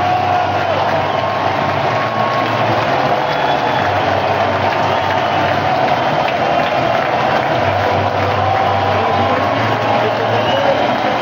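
A large crowd cheers and roars loudly in a big echoing arena.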